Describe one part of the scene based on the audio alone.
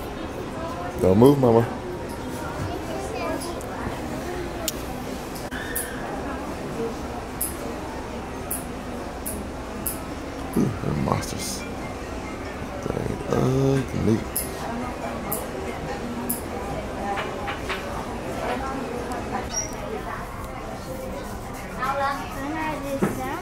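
A young girl speaks nearby in short bursts.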